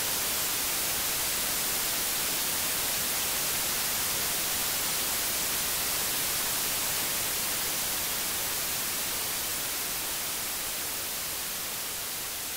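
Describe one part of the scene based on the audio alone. Gentle waves wash softly onto a stony shore.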